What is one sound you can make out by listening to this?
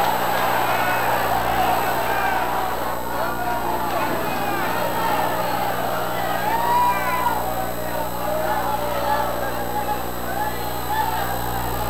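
A large crowd of men and women sings and calls out loudly together.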